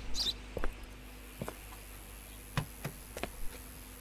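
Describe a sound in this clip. A car's boot lid creaks open.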